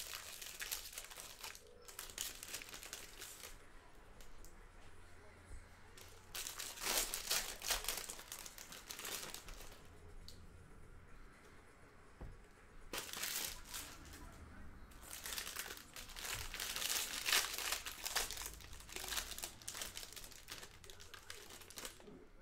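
Foil wrappers crinkle and tear up close.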